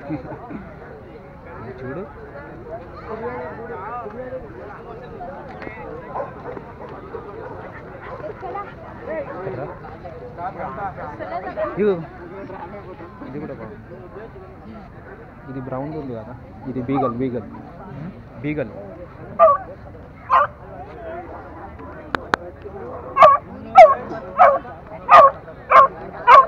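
A crowd of young men chatters outdoors.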